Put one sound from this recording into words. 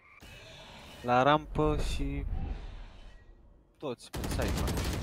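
A young man speaks with animation through a headset microphone.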